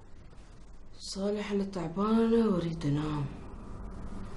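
A woman speaks close by in a drawn-out, whining voice.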